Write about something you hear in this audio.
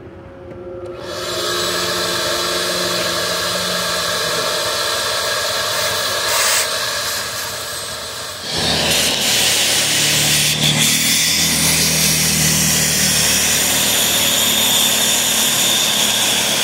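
A shop vacuum motor runs with a steady roar.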